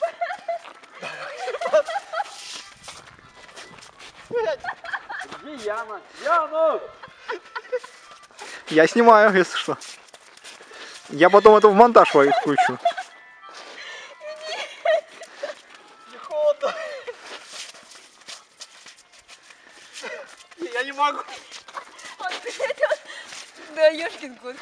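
A young woman laughs and shrieks playfully nearby, outdoors.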